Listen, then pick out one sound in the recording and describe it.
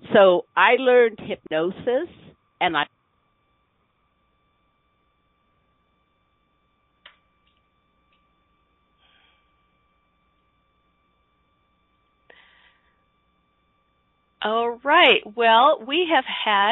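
A woman speaks calmly and warmly into a close microphone.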